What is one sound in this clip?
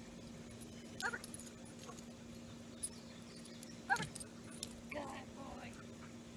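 A woman calls out short commands to a dog outdoors.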